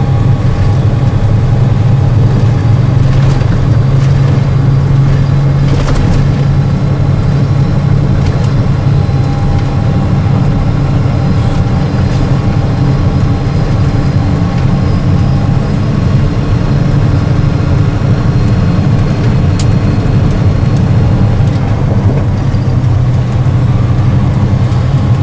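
Tyres roll along the road with a steady rumble.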